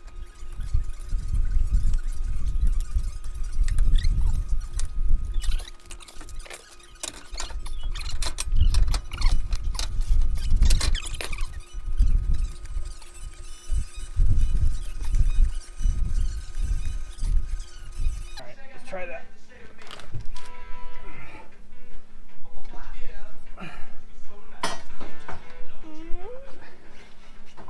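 Metal tools clink and scrape against a car's wheel hub.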